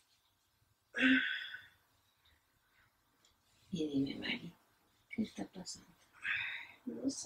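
A middle-aged woman speaks softly nearby, in short bursts.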